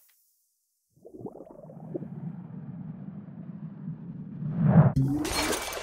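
A glass bowl rolls across a wooden surface with a low rumble.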